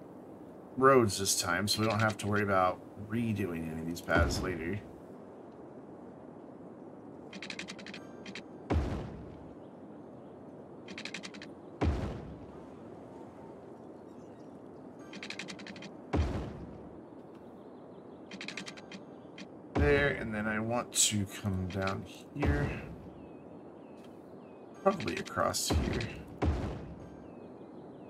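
A man talks casually into a close microphone, in bursts.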